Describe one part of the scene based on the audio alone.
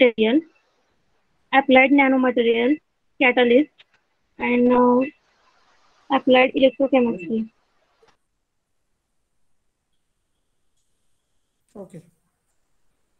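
A young woman speaks calmly, close to a microphone, in short phrases.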